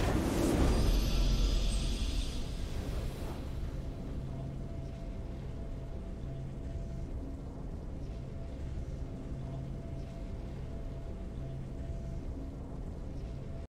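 A triumphant game fanfare swells as the match ends.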